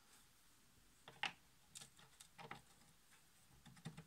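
A metal collar clinks as it slides onto a shaft.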